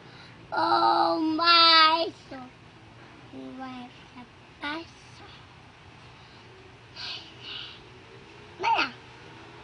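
A little boy sings and speaks loudly in short bursts close by.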